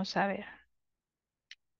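A young woman speaks briefly through an online call.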